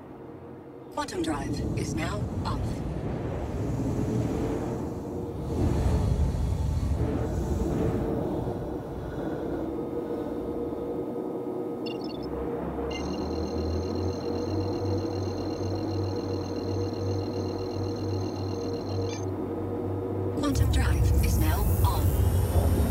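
A spaceship's engines hum with a low drone.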